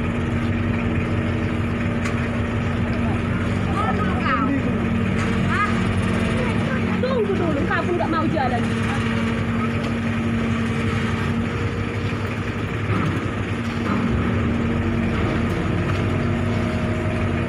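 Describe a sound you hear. Water splashes against a ship's hull.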